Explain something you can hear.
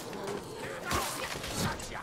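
A blade hacks into flesh with a wet thud.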